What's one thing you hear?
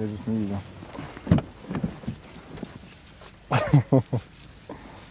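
A car door is opened with a click.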